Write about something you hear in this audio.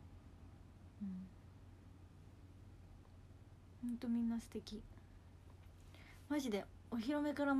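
A young woman speaks casually, close to the microphone.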